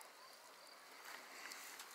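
A bonfire crackles.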